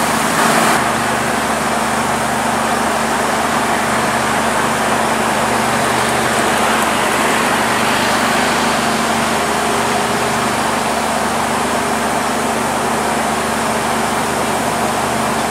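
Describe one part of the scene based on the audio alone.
A diesel train engine rumbles steadily close by.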